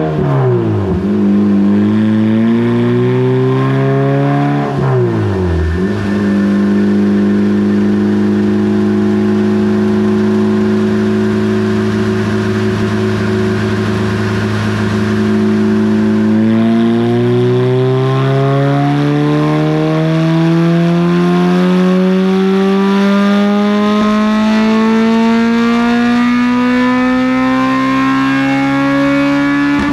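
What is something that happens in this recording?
A car engine roars loudly on a dyno, revving up and down, then holding steady and climbing slowly in pitch.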